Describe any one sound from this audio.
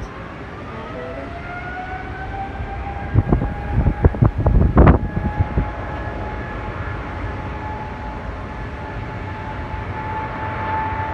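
A distant jet engine whines, rising in pitch and then holding steady.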